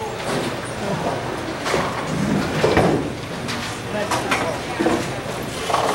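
Bowling pins clatter and crash now and then in a large echoing hall.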